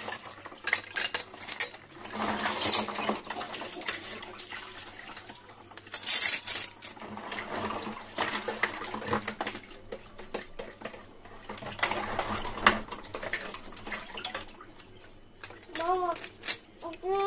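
Dishes clatter and scrape against each other.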